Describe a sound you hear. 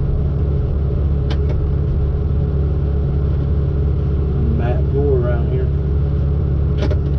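A heavy diesel engine hums steadily close by.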